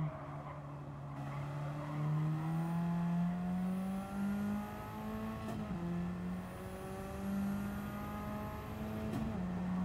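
A racing car engine revs high and climbs through the gears.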